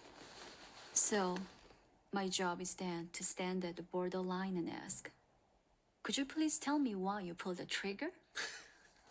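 A young woman speaks calmly and closely.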